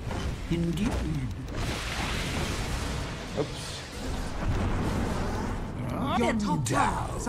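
Magic spells whoosh and zap in a video game.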